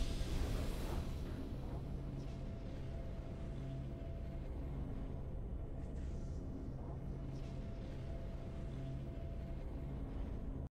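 Triumphant game music plays.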